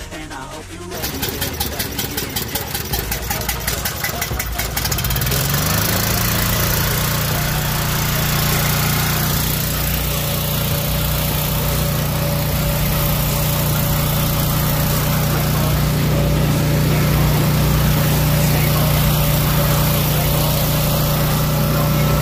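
A small petrol engine chugs loudly and then settles into a steady hum.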